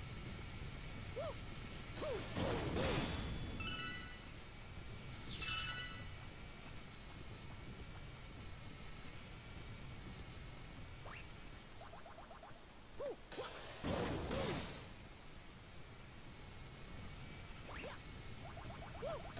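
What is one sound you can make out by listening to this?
Video game music plays softly throughout.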